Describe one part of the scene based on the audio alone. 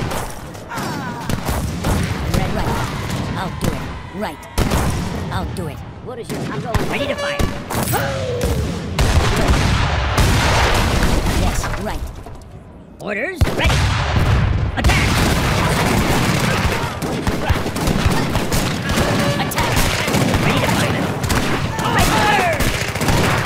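Musket gunfire crackles in rapid volleys.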